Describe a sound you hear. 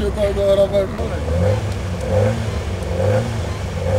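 A second rally car engine idles and revs nearby.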